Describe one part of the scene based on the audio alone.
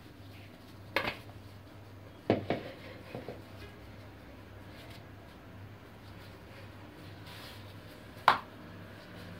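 A wooden rolling pin knocks sharply against a stone counter.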